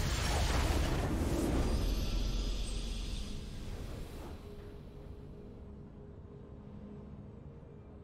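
A triumphant game fanfare swells and then slowly fades away.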